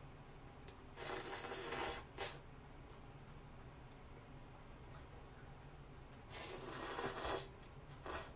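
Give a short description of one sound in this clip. A young woman slurps noodles loudly up close.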